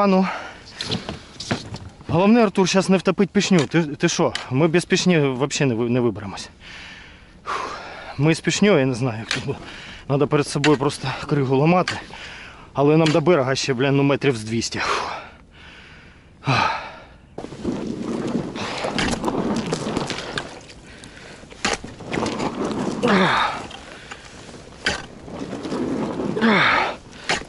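Ice cracks and crunches as a pole smashes through it.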